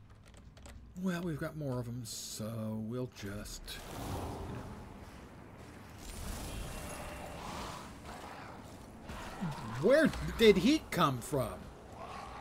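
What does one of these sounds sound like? An elderly man talks calmly into a microphone.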